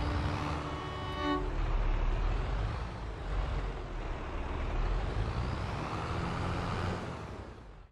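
A small tractor engine rumbles steadily at idle.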